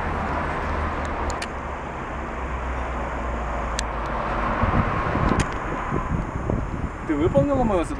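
Traffic hums along a wide street outdoors.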